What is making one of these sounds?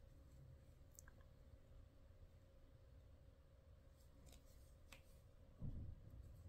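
A metal crochet hook clicks and rustles through yarn.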